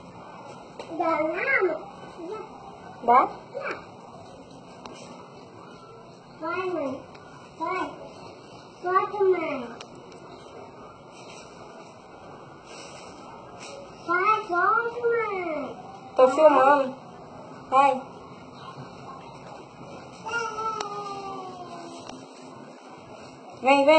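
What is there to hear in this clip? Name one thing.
A baby squeals and babbles close by in short bursts.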